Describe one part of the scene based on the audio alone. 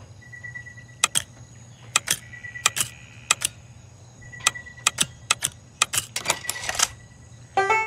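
Metal lock pins click sharply, one after another.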